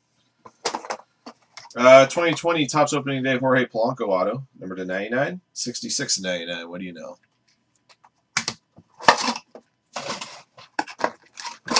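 A box lid is pulled open with a papery scrape.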